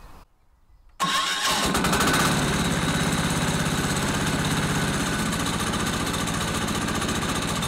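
A small engine starts up and runs loudly and steadily.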